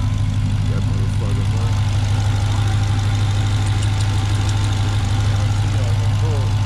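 A supercharged car engine idles with a deep, steady rumble close by.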